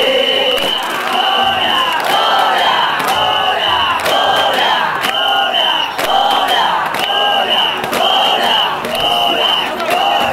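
A group of men chant together in rhythm.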